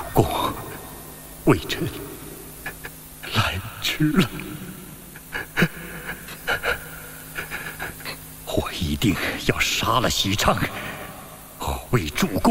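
A middle-aged man speaks close by in a choked, grieving voice.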